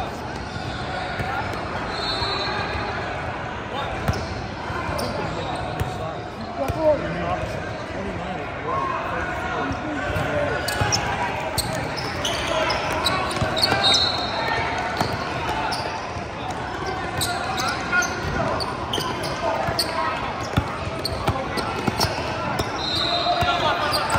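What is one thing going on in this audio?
Young players call out to each other, echoing in a large hall.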